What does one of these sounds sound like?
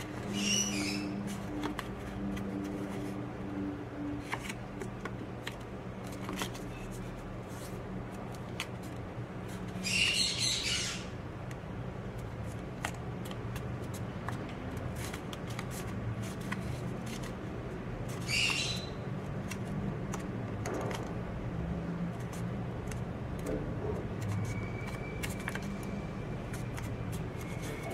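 Paper crinkles and rustles as it is folded and creased by hand.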